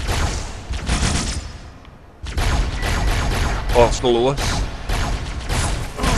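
Plasma gunfire blasts in rapid bursts.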